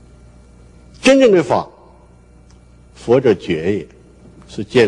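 An elderly man speaks slowly and calmly into a microphone, with pauses.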